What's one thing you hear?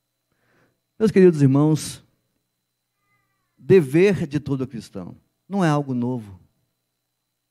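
A middle-aged man speaks calmly into a microphone through a loudspeaker, in short phrases with pauses.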